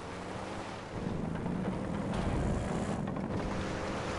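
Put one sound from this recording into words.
Tyres rumble over the planks of a wooden bridge.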